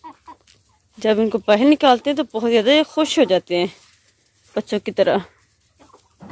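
A rooster crows loudly.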